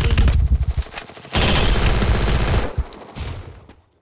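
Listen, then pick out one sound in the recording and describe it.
A wall of ice cracks up out of the ground.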